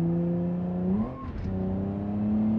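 A car engine drops in pitch briefly as a gear shifts.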